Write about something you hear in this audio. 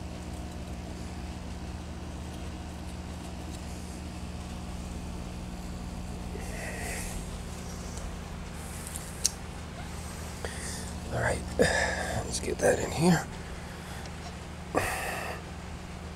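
A fan hums steadily.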